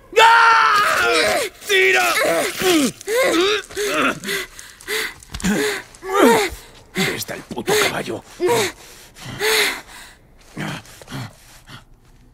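A man groans in pain, close by.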